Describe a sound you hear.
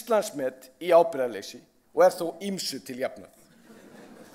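A man speaks calmly into a microphone in a large hall.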